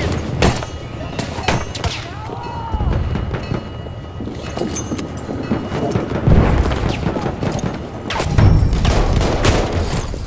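Rifle shots crack sharply, one at a time.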